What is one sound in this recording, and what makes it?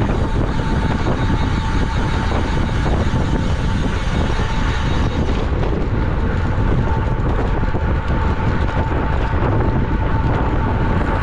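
Wind rushes loudly past a fast-moving bicycle rider.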